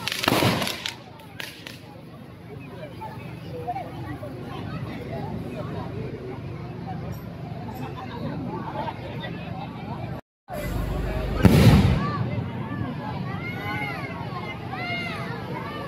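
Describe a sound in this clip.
Fireworks crackle and fizz overhead.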